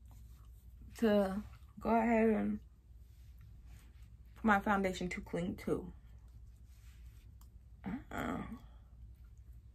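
A woman makes long drawn-out vocal sounds close by, in short bursts.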